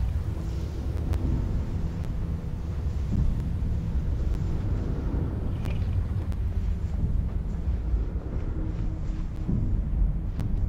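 A deep wind rumbles and howls steadily.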